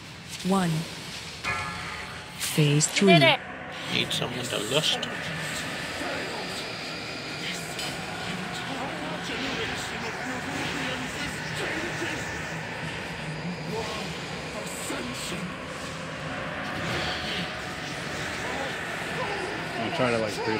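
Magic spells whoosh and chime in a game battle.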